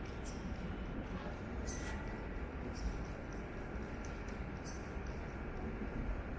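A faint murmur of distant voices and footsteps echoes through a large, open hall.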